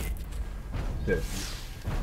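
A short electronic jingle sounds as a video game round ends.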